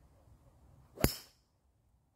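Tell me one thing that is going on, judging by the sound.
A golf club sharply strikes a ball.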